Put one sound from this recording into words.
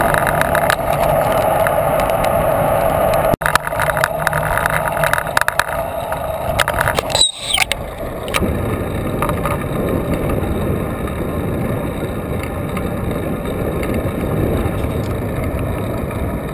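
Wind buffets loudly over a microphone outdoors.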